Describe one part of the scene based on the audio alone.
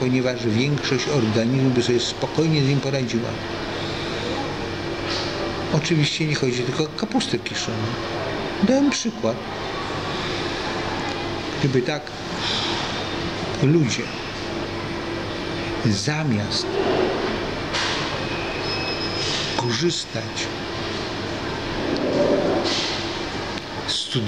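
An elderly man talks calmly close to the microphone.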